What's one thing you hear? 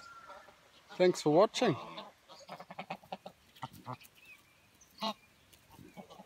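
Geese honk loudly.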